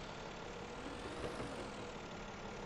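A truck's metal body clanks and scrapes as an excavator lifts it.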